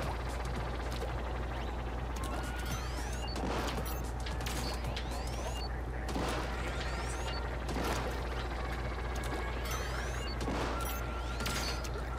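A game weapon fires in rapid, splattering bursts.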